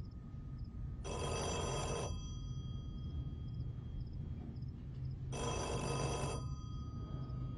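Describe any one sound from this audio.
An old telephone rings loudly.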